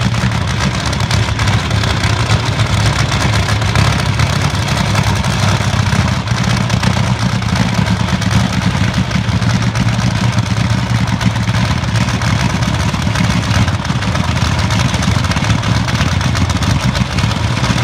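A dragster engine idles with a loud, deep, steady rumble.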